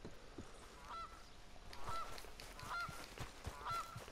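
Footsteps walk over grass.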